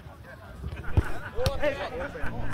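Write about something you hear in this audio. A ball is kicked with a sharp thump.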